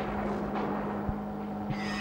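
A television plays nearby.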